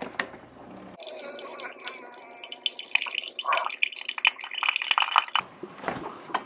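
A coffee machine hisses and gurgles as coffee streams into a mug.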